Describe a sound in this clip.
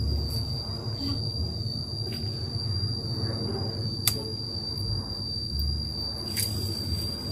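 Leaves rustle and branches creak in a tree.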